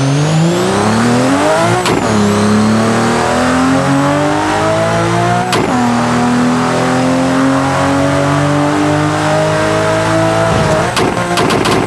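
A sports car engine roars, rising in pitch and dropping at each gear change.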